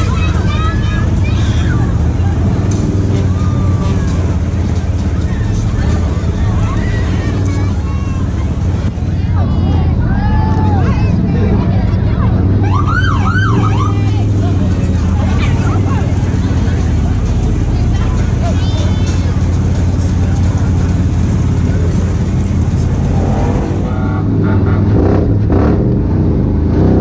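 A crowd of people cheers and calls out along the road.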